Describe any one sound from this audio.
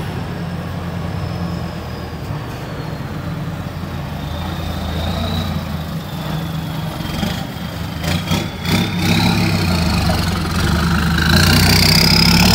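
A truck drives slowly toward the listener, its engine growling louder.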